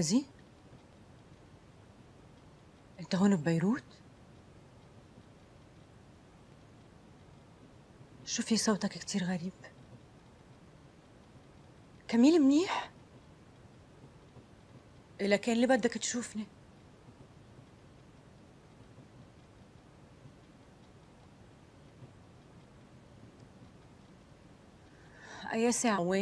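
A young woman speaks on a phone in short, calm bursts with long pauses.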